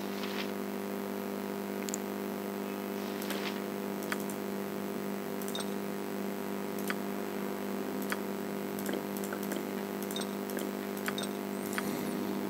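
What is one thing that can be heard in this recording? Soft clicks sound as items are picked up and dropped.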